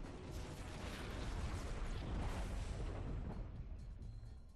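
A rushing whoosh of wind sweeps past, then fades.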